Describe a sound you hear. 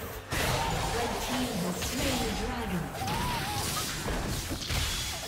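Magic spells whoosh and burst in a fight.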